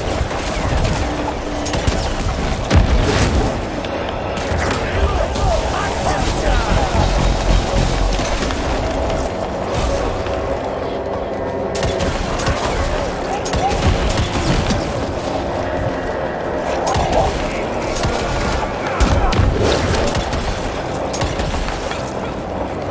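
Gunfire and magical blasts crack and boom in a video game.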